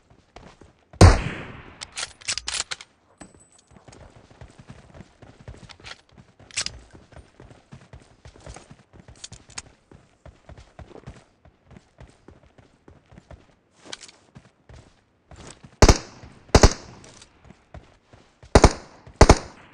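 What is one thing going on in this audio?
Gunshots ring out in sharp, loud cracks.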